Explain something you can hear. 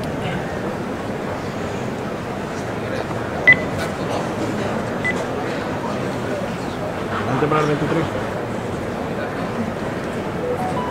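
A crowd murmurs in the street outdoors.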